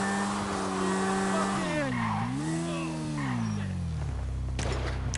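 A motorbike engine revs and its pitch rises and falls.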